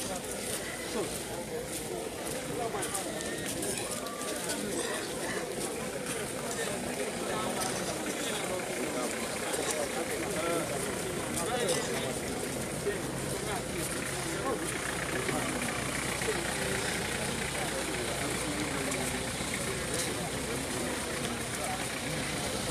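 A crowd of men and women chatter all around, close by, outdoors.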